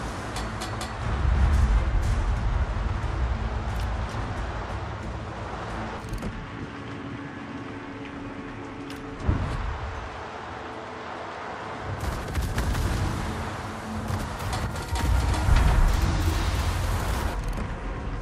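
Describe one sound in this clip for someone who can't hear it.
Heavy ship guns fire with deep, rumbling booms.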